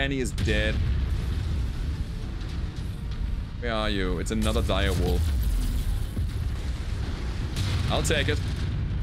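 A deep steady rumble runs throughout.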